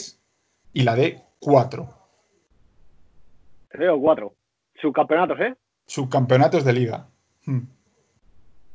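A second young man speaks with animation over an online call.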